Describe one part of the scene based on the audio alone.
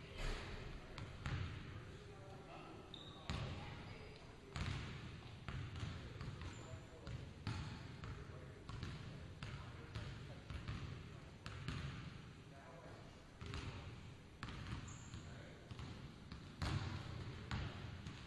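A basketball bounces on a wooden floor, echoing loudly in a large hall.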